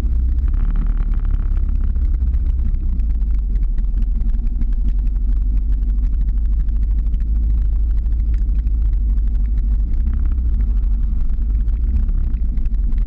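Skateboard wheels roll and rumble over asphalt.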